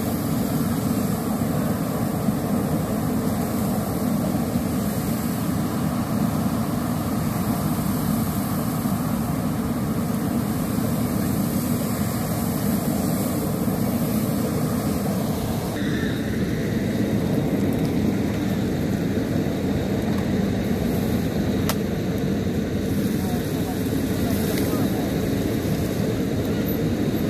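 A fire engine's pump engine rumbles steadily nearby.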